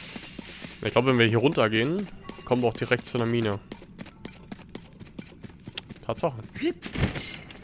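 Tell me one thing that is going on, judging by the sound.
Footsteps run quickly over grass and rock.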